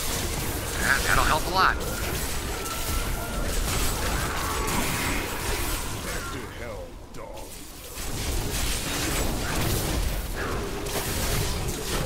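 Lightning bolts crackle and zap.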